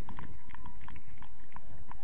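A football is kicked with a dull thud nearby.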